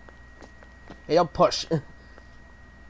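A young man speaks loudly.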